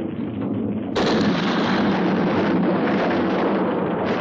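A loud explosion booms and debris crashes down.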